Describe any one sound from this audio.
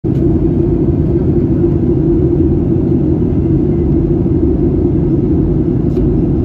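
A jet engine roars with a steady low rumble inside an airplane cabin.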